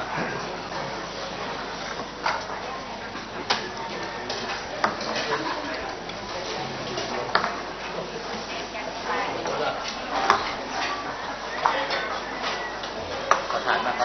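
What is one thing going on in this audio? A crowd of people murmurs and chatters in the background.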